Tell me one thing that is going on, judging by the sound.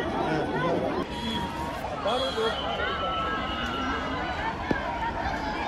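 A large crowd murmurs and talks in the distance outdoors.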